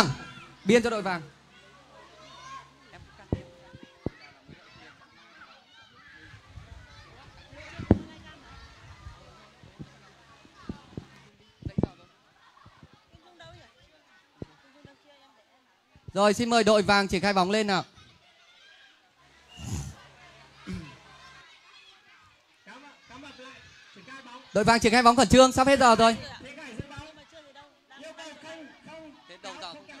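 Children splash and wade in a pool.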